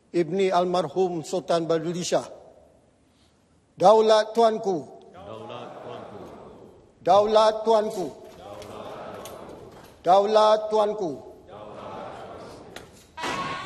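A large crowd shouts together in unison, again and again, in a large echoing hall.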